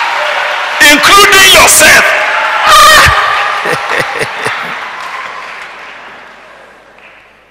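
A crowd cheers and applauds loudly, then fades.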